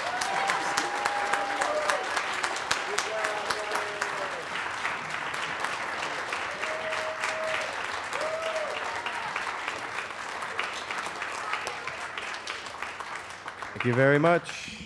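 An audience applauds in a large hall.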